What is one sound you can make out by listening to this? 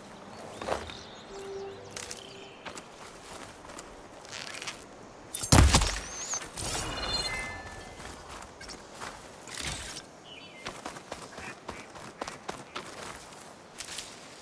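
Leafy plants rustle as someone pushes through them.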